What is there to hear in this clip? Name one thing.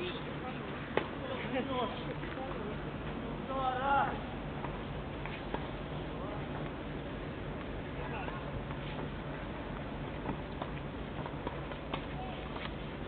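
A tennis ball is struck by a racket with sharp pops, now and then.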